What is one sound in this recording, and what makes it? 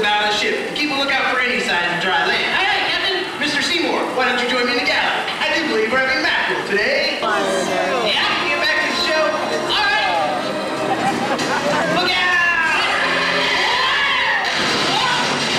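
A man speaks animatedly over a loudspeaker.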